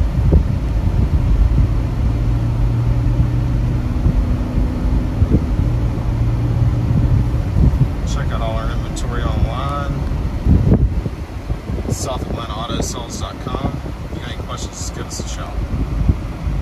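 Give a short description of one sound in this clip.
A car's tyres rumble steadily on the road from inside the car.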